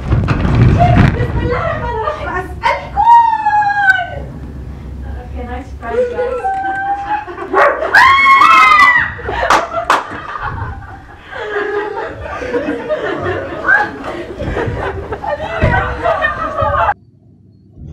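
Women scream in alarm close by.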